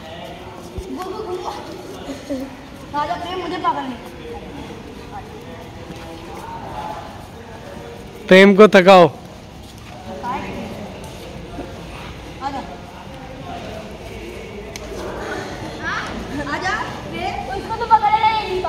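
Children talk and call out nearby outdoors.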